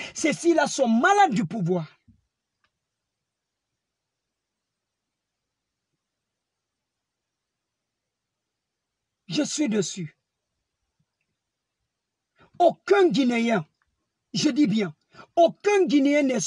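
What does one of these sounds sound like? A man speaks with animation close to a phone microphone, pausing between phrases.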